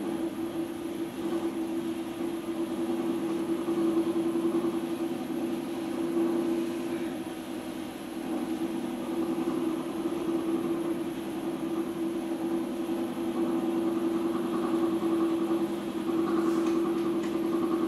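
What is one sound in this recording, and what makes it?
Wet clay squelches and rubs under hands on a spinning wheel.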